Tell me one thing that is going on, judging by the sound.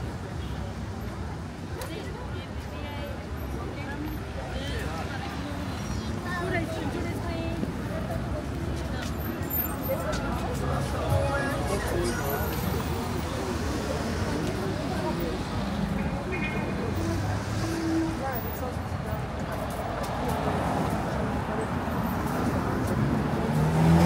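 Traffic rumbles steadily along a city street outdoors.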